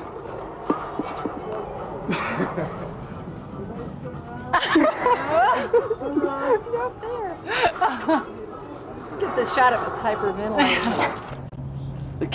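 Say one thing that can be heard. Women talk and laugh with animation.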